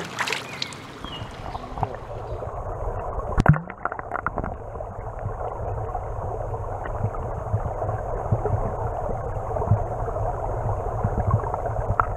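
Water rumbles and gurgles, heard from underwater.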